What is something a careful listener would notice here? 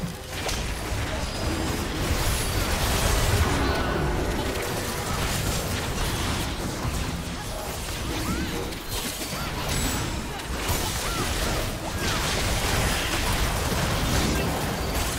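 Fantasy battle effects burst and clash, with spells whooshing and hits thudding.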